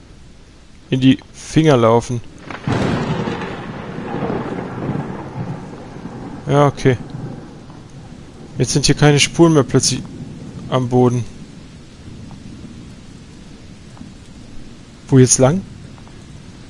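A young man speaks in short bursts into a close microphone.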